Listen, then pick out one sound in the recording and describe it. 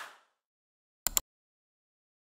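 A mouse button clicks.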